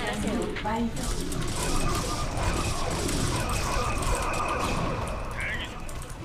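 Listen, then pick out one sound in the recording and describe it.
Weapons fire and explosions crackle in a game battle.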